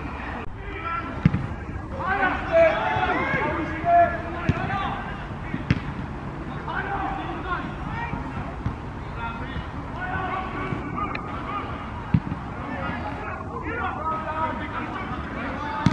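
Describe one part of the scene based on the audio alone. Men shout and call to each other across an open field.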